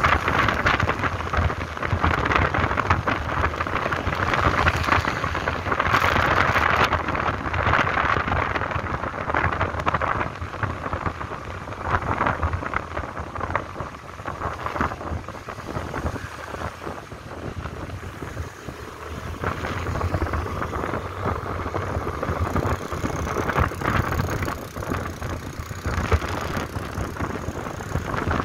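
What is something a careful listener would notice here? A motorbike engine hums steadily underneath.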